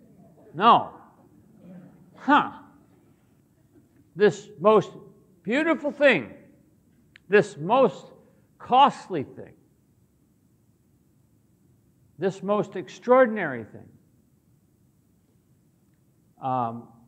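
An older man speaks through a microphone in short bursts with pauses, in a large echoing hall.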